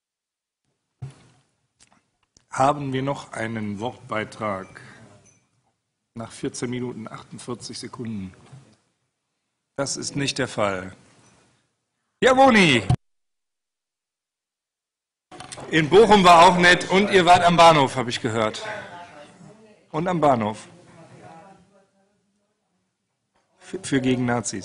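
Men speak calmly in turn through table microphones, with pauses between.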